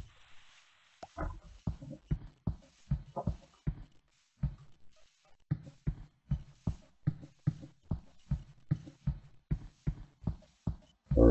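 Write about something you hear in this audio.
Footsteps thud steadily on soft ground.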